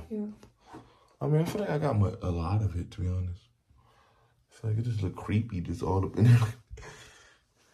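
A young man speaks with animation close to the microphone, his voice rising and falling.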